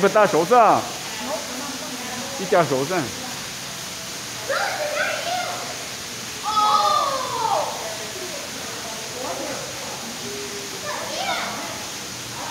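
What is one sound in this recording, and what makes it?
Young children call out in high, lively voices nearby.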